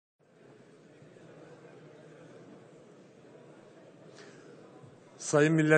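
A crowd murmurs quietly in a large hall.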